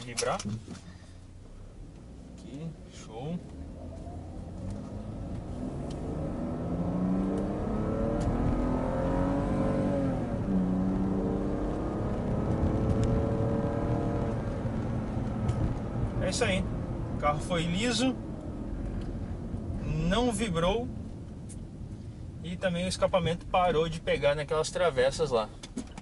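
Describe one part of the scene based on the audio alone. A car engine hums and rises in pitch as the car speeds up.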